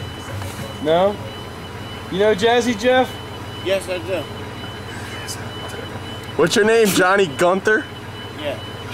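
A man speaks in short, animated bursts close by.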